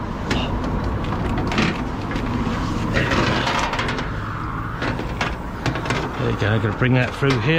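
Coiled rubber hoses rub and rattle as they are handled.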